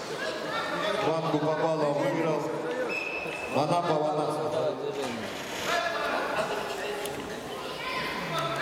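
Men shout from the sidelines in a large echoing hall.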